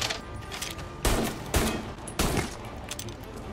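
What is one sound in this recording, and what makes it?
A pistol fires several single loud shots.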